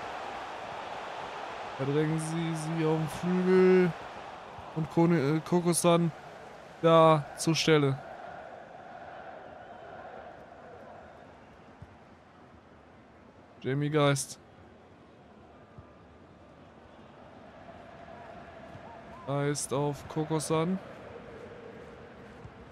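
A large crowd murmurs and cheers in a stadium, swelling and fading.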